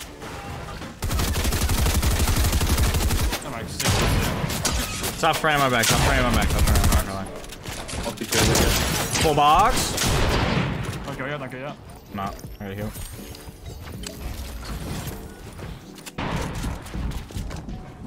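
Gunshots and building clatter ring out in a game.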